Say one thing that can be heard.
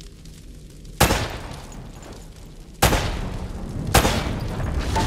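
A pistol fires a few sharp, loud shots.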